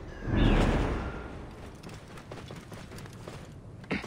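A horse's hooves thud on soft sand.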